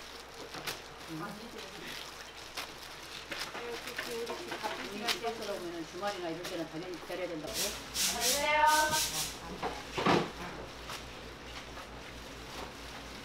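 Plastic gloves rustle and crinkle as hands handle food.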